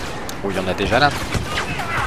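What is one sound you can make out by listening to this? Laser blasters fire in sharp bursts.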